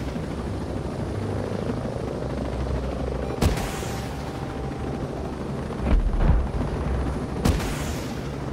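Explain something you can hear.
A helicopter's rotor thumps and its engine roars steadily.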